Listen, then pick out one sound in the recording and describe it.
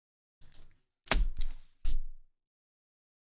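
A foil card pack crinkles as hands handle it.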